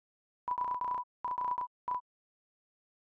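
Short electronic blips chirp rapidly as game text prints out.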